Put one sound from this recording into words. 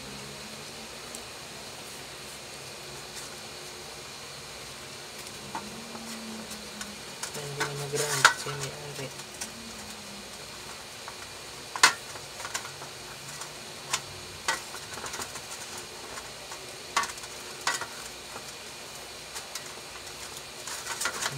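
Electrical tape unrolls with a sticky crackle.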